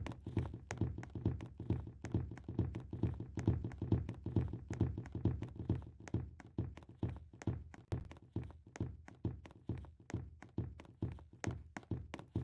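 Quick footsteps run steadily over the ground.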